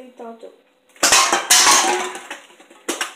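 Aluminium cans clatter as a stacked tower topples onto a wooden floor.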